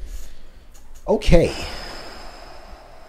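Another young man speaks calmly close to a microphone.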